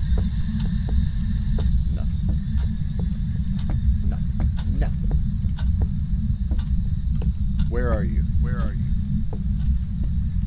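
A radio crackles with harsh static, clicking rapidly as it scans through stations.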